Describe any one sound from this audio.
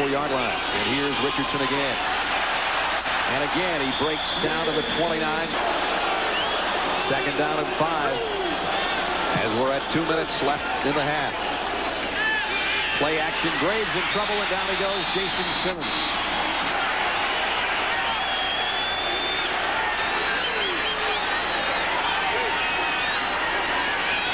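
A large crowd cheers and roars loudly in a big echoing stadium.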